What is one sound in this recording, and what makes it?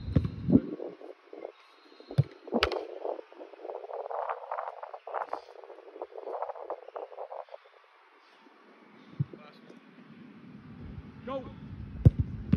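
A football thumps as a man kicks it.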